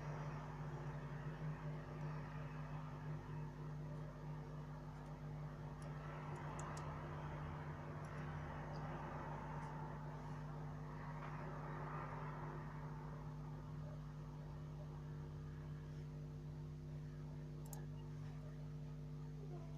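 Metal tweezers tap and click softly against small phone parts.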